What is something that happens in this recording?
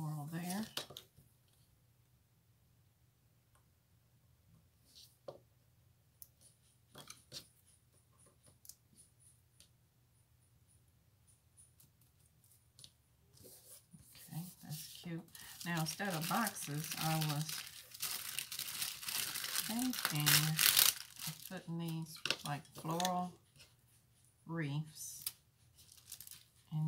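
Paper pages rustle and slide against each other.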